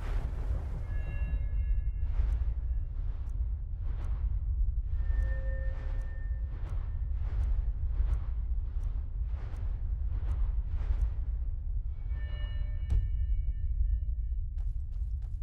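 A soft, bright chime rings out.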